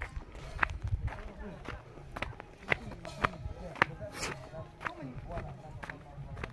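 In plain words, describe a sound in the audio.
Footsteps crunch steadily on a dirt path outdoors.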